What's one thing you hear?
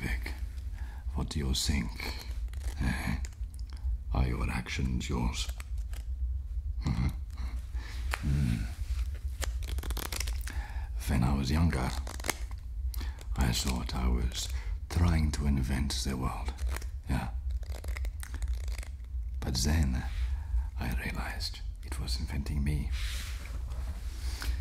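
A man speaks rhythmically and forcefully, close up.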